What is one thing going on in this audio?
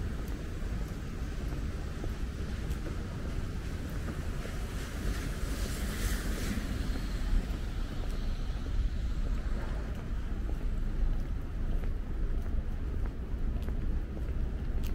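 Wind rumbles outdoors on a damp day.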